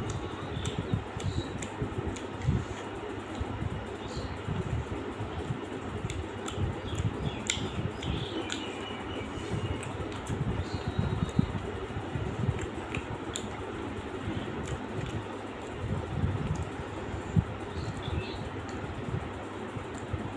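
Fingers pick at crispy food with soft crackles.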